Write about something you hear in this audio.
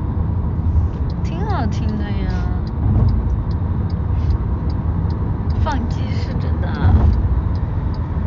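A young woman speaks softly and close by, muffled.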